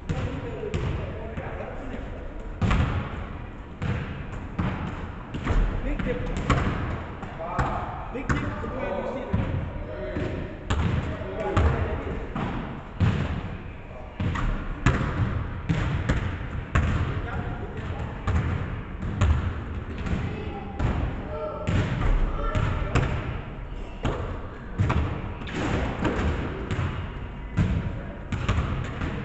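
Basketballs bounce on a wooden floor in a large echoing gym.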